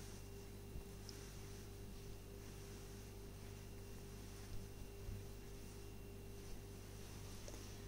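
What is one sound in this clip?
Hands rustle and smooth soft knitted fabric.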